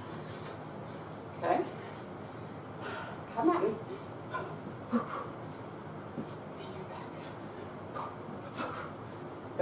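Sneakers squeak and thud on the floor as a woman moves quickly.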